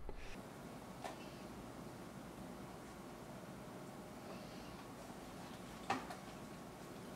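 Utensils clink and knock on a counter.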